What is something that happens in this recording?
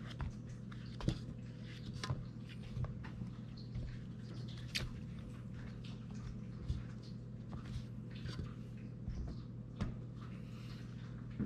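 Soft vegetable slices tap and clink as they are laid into a metal pan.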